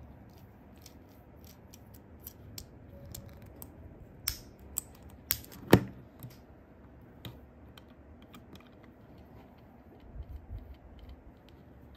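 Small plastic bricks click and snap together.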